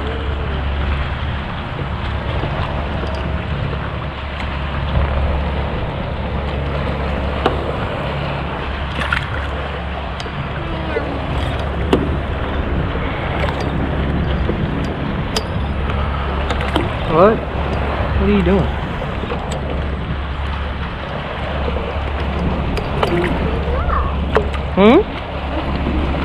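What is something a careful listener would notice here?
Wind blows steadily across the open water.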